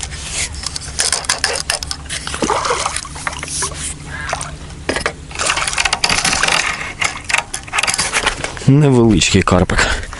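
Water splashes close by as a hooked fish thrashes at the surface.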